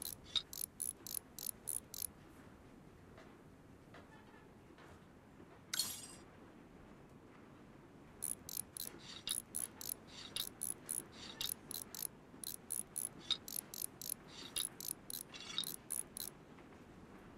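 A wrench ratchets quickly as bolts are loosened.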